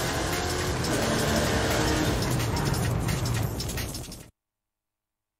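A car engine roars at high speed, then slows down.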